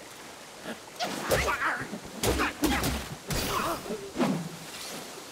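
Heavy blows and blade strikes land in quick bursts.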